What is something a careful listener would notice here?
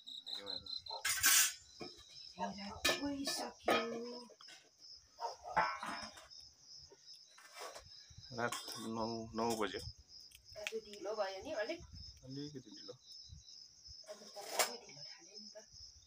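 Metal pots and dishes clink and clatter as they are washed.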